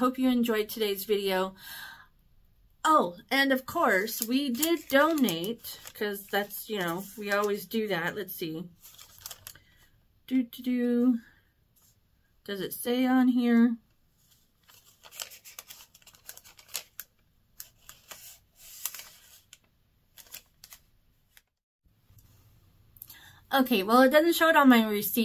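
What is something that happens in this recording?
A woman talks calmly and close to a microphone, with pauses.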